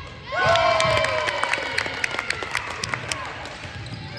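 A basketball bounces repeatedly on a hardwood floor, echoing in a large hall.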